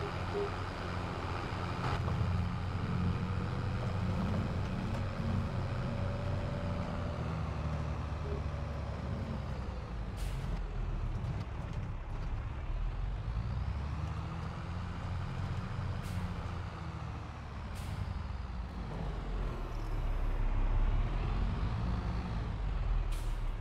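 A tractor engine rumbles steadily and rises and falls in pitch as it drives.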